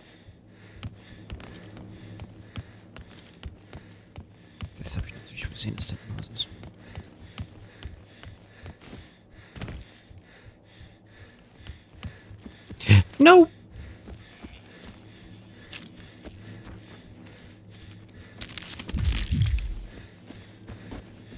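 Footsteps thud steadily across creaking wooden boards.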